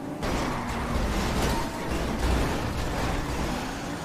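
Cars crash together with crunching metal.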